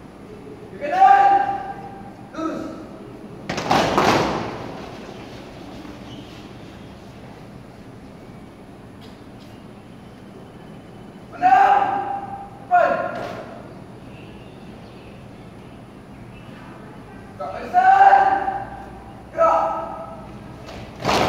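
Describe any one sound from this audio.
A man shouts drill commands loudly in an open, echoing hall.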